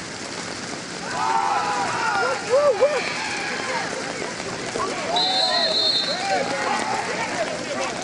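A crowd cheers loudly during a play.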